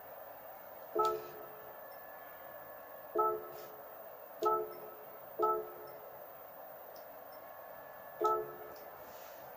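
Short electronic chimes sound from a television speaker as menu choices are made.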